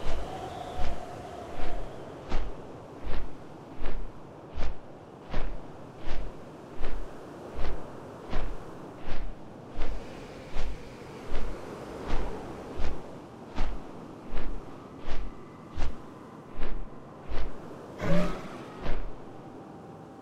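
Large wings flap with heavy, regular whooshing beats.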